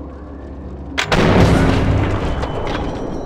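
A rifle fires a single loud shot that echoes away.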